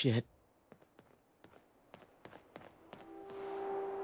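Footsteps scuff lightly on pavement.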